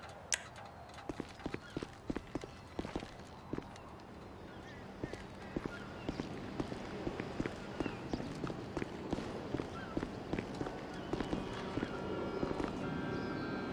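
Footsteps run on concrete.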